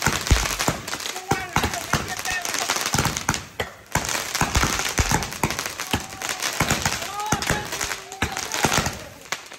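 Fireworks whistle as they shoot upward.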